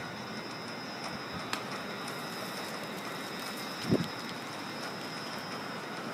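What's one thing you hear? A garage door rumbles as it rolls open.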